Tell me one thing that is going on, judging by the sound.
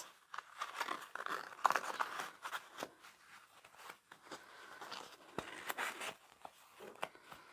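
Fabric rustles and crinkles close by.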